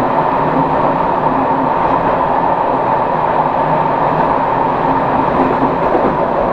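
Train wheels clatter over the rail joints.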